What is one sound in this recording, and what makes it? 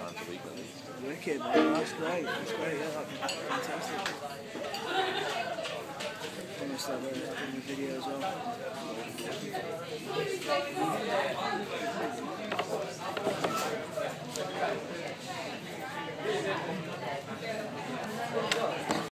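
Men and women chatter nearby in a lively crowd.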